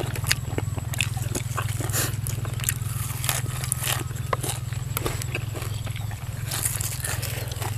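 A man and a woman chew crunchy fresh greens noisily, close by.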